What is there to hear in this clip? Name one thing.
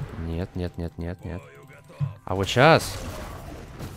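A young man talks into a microphone with animation.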